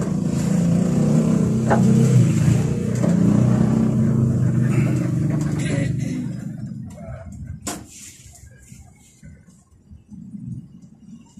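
A large vehicle engine rumbles steadily from inside, then quietens.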